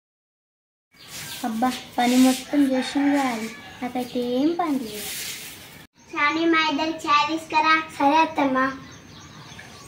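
A young girl speaks calmly and close by.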